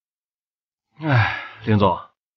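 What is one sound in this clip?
A young man speaks briefly.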